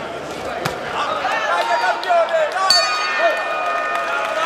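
Men in the crowd shout loudly.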